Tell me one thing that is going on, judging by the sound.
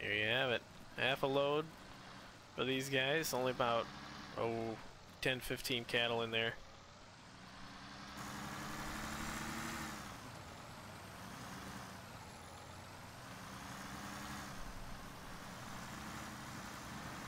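A tractor engine hums steadily.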